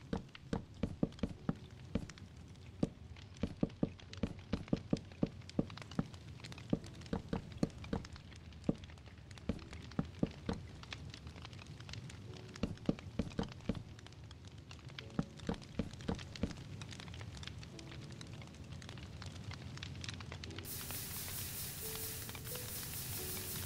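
Campfires crackle steadily.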